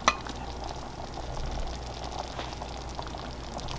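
A spoon stirs thick stew in a pot.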